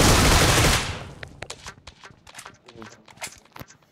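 Footsteps tap quickly on stairs.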